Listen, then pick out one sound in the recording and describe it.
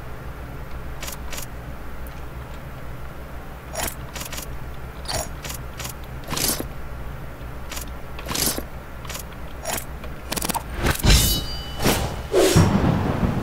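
Short game menu clicks and blips sound as items are selected.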